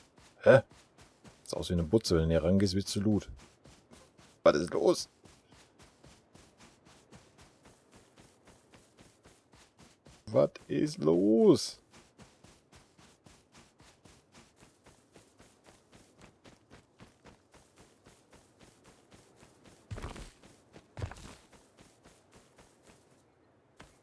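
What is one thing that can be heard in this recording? Footsteps crunch steadily over sand and grass.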